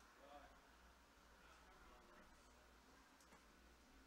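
An office chair rolls and creaks.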